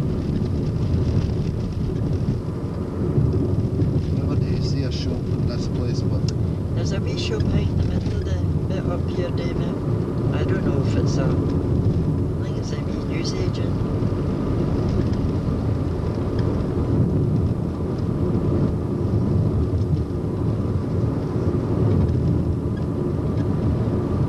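A car engine hums with a steady low road rumble.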